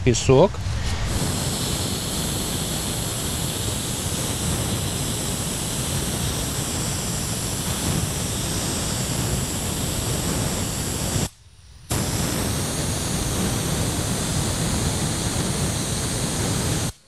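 A spray gun hisses steadily as it sprays water.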